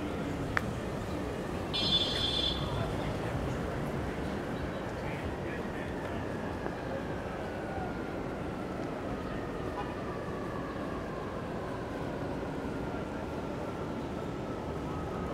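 Street traffic rumbles steadily outdoors.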